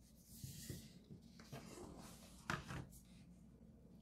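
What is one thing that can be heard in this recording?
A folded game board is unfolded and laid flat on a wooden table.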